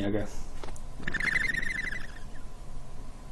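A small bird chirps in a quick trill.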